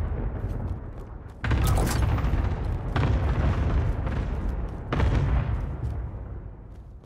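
Gunshots boom and echo loudly.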